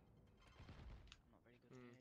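A rifle fires a burst of sharp gunshots.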